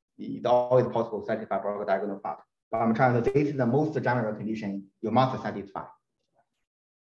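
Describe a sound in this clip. A man lectures calmly through a microphone.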